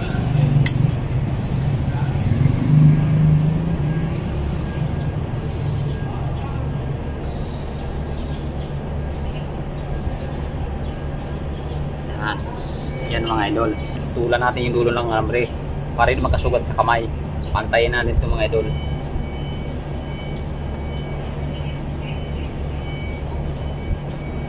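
A steel hook twists tie wire around metal bars with light scraping clinks.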